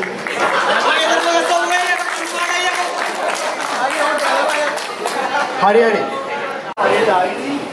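A young man speaks cheerfully into a microphone, heard through a loudspeaker.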